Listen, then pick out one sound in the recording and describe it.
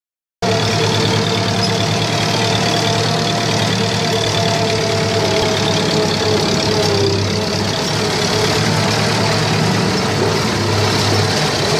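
A tractor engine chugs steadily up close.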